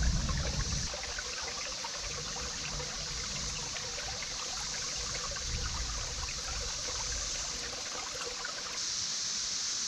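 A shallow stream trickles and babbles over rocks.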